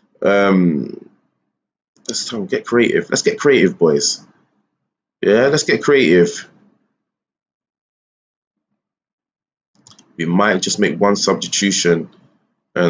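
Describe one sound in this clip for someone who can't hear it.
A man talks calmly into a close microphone, in bursts with pauses.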